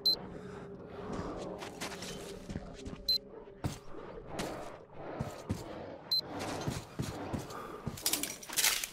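Footsteps thud on a creaking wooden floor.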